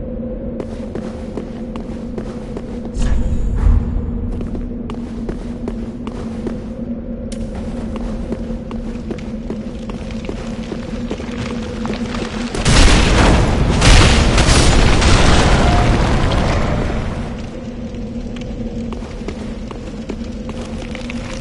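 Armoured footsteps clank steadily on stone.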